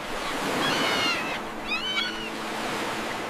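Seagulls cry overhead.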